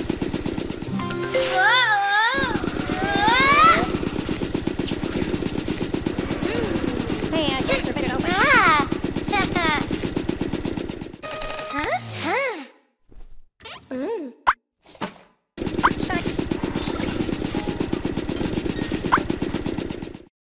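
Cartoon sound effects whoosh and zap.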